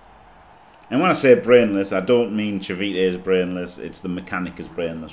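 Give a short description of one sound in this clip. A man talks with animation through a microphone.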